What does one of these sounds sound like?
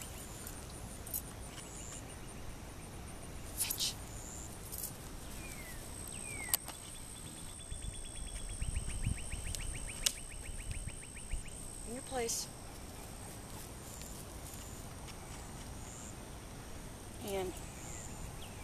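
A woman calls out short commands nearby, outdoors.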